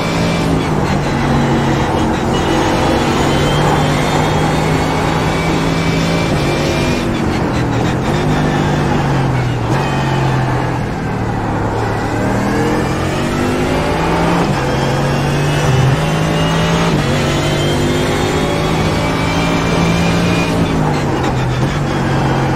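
Gear shifts snap sharply between engine notes.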